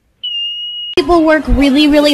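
A woman sings loudly and with feeling.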